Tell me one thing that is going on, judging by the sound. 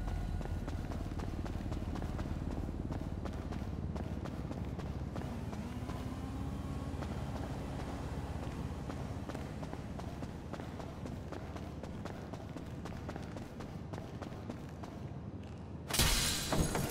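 Footsteps run quickly on concrete in an echoing space.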